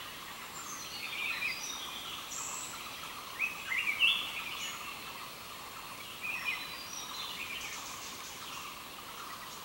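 Small birds chirp and twitter in the trees.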